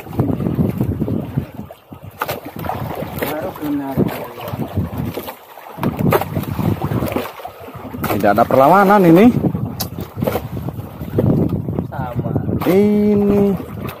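A fishing reel clicks as it is wound.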